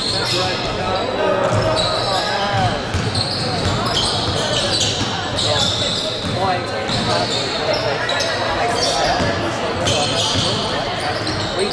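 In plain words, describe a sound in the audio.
Young players shout and call out to each other.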